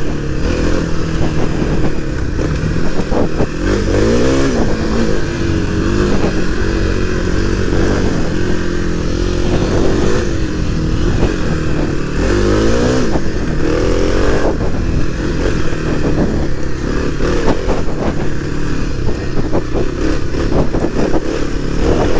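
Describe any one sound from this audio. A motorcycle engine drones close by and revs up and down.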